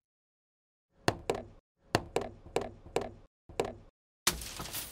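Scissors snip repeatedly.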